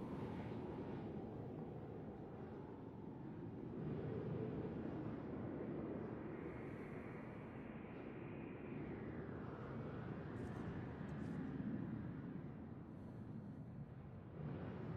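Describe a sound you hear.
Wind howls outside in a steady, low rumble that swells and eases.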